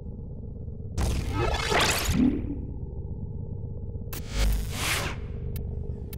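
A whooshing interface sound sweeps past.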